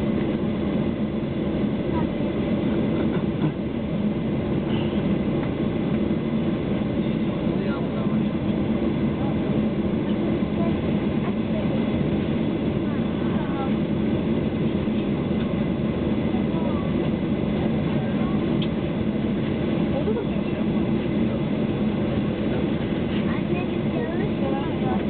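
A jet engine roars steadily from inside an aircraft cabin.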